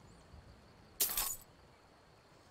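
Coins clink briefly.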